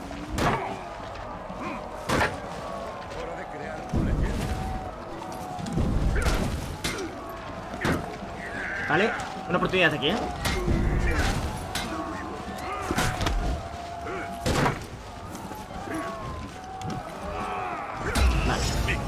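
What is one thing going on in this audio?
Swords clash and strike in sharp bursts.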